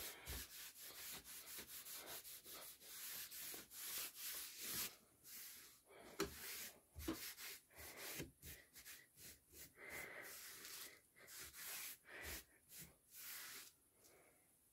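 A cloth rubs briskly over a wooden surface.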